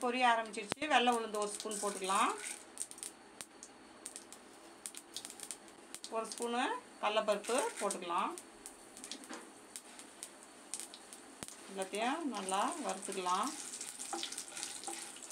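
Seeds sizzle and crackle in hot oil.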